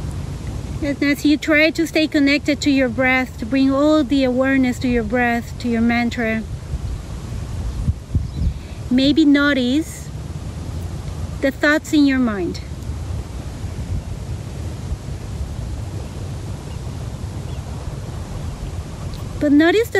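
A young woman speaks calmly and softly into a nearby microphone.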